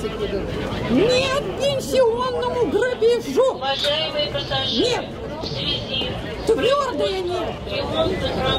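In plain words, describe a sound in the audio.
A middle-aged woman shouts with animation close by.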